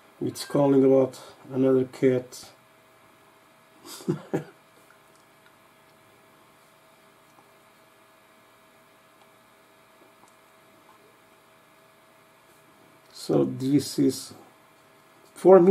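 A man talks calmly, close to a microphone.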